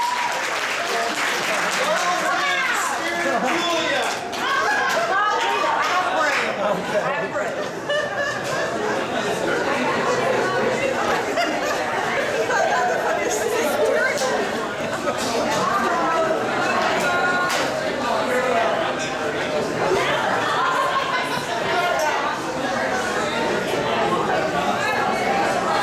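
Many people chatter in a busy, echoing room.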